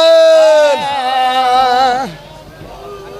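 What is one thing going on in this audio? A man chants loudly into a microphone, his voice carried by loudspeakers.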